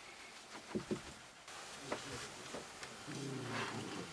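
A cardboard box knocks and rustles as a child handles it.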